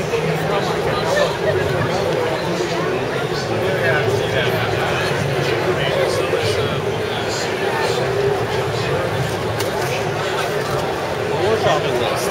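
A crowd of men and women chatter all around in a large, busy indoor hall.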